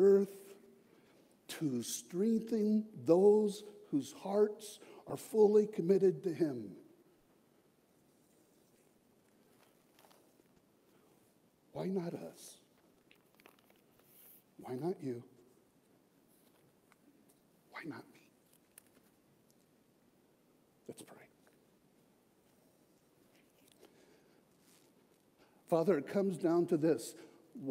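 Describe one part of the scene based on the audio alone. A middle-aged man preaches with animation into a microphone in a large echoing hall, with long pauses.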